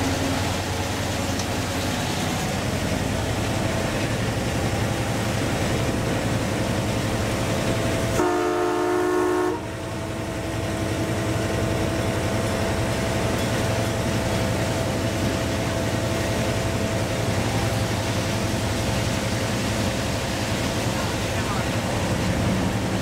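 A locomotive engine rumbles steadily as the train rolls along the track.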